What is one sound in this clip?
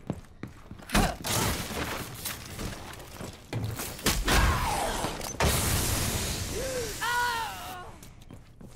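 Gunshots blast in rapid bursts.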